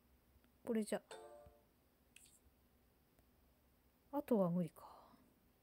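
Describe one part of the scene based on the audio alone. Short electronic chimes ring as game menus open and close.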